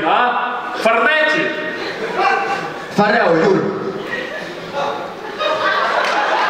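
A young man speaks with animation through a microphone in a large echoing hall.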